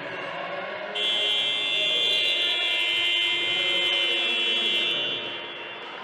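A loud buzzer blares steadily for a few seconds.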